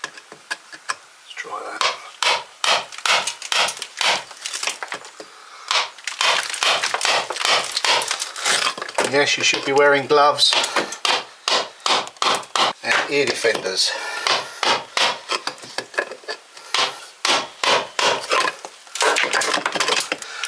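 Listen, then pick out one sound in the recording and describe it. A hammer taps rapidly on a chisel against stone.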